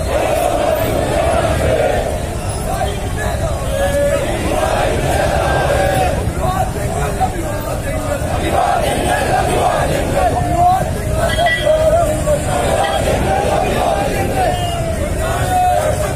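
A large crowd of men chants slogans together outdoors.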